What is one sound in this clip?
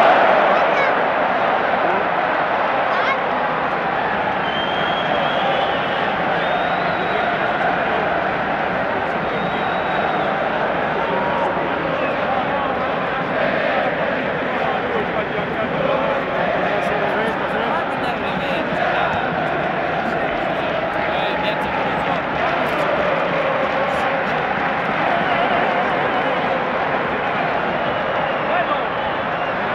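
A large stadium crowd chants and roars steadily, echoing around the stands.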